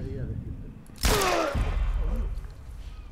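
A gunshot cracks and echoes.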